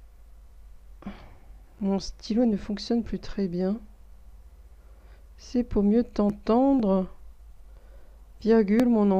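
A woman reads aloud slowly and expressively, close to a microphone.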